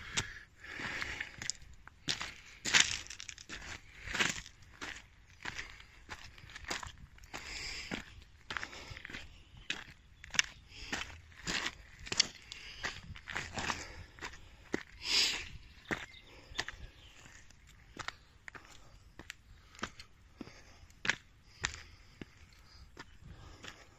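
Footsteps crunch on loose gravel at a steady walking pace.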